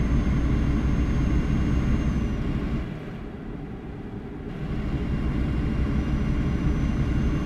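A heavy truck engine rumbles low and steady, dropping quieter for a moment before picking up again.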